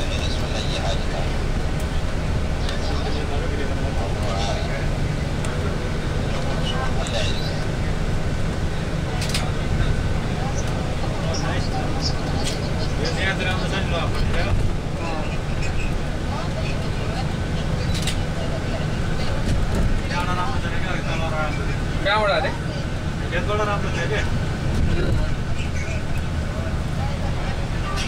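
Cars rush past on a highway.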